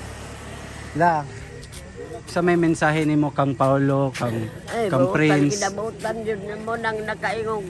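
An elderly woman speaks close by, with a strained, emotional voice.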